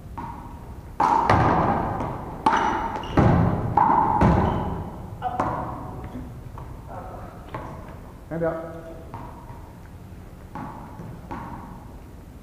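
A ball thuds on the hall floor and against the walls.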